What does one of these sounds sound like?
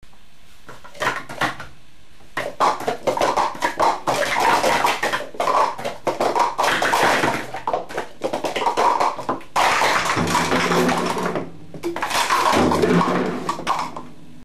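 Plastic cups clatter and click rapidly as they are stacked and unstacked on a mat.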